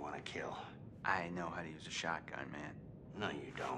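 A young man speaks tensely up close.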